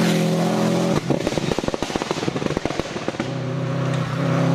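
Gravel and stones crackle under a car's tyres.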